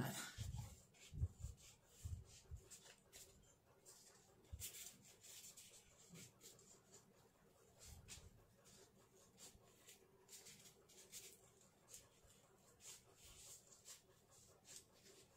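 Soft foam crinkles and rustles as hands fold and press it.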